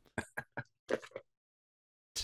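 A man sips a drink through a straw.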